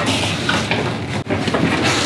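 A man shuffles papers on a desk.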